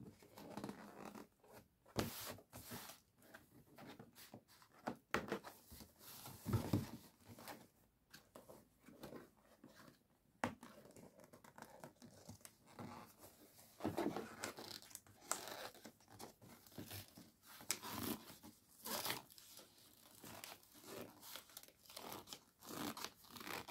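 A cardboard box rustles and taps as it is handled.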